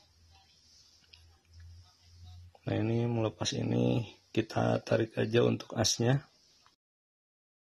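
Metal parts click and scrape together.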